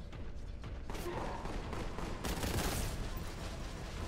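Gunfire bursts out in rapid shots.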